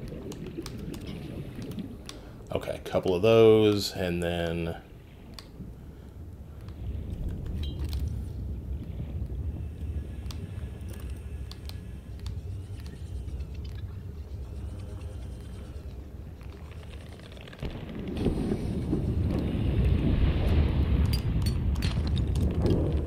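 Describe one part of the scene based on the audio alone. A low underwater rumble and murmur of water carries on throughout.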